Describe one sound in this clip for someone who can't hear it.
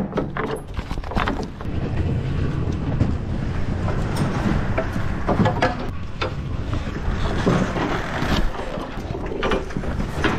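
A heavy tarpaulin rustles and flaps as it is pulled.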